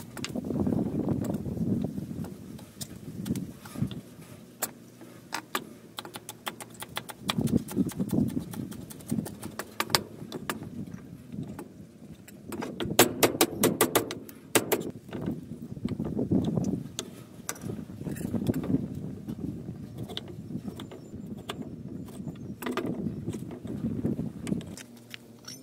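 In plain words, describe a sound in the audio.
A kitchen knife chops herbs on a wooden chopping board.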